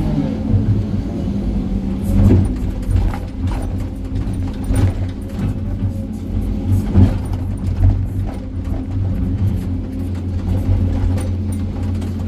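Rocks and rubble clatter and scrape against a steel bucket.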